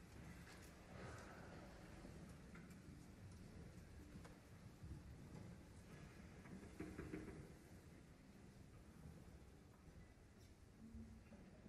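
An orchestra plays slowly and softly in a large, echoing concert hall.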